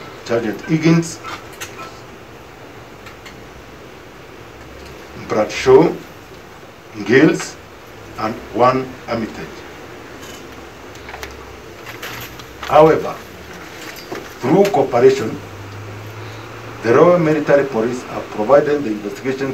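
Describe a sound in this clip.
A man speaks slowly and haltingly into a microphone, reading out.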